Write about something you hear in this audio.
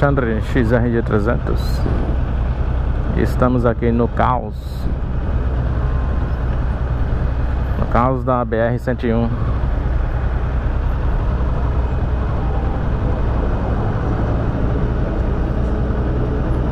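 A parallel-twin motorcycle engine runs low as the bike rolls slowly in traffic.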